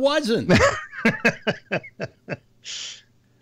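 An elderly man laughs over an online call.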